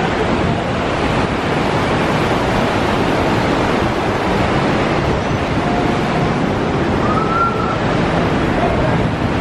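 Waves wash in and roll over wet sand, with a steady rushing.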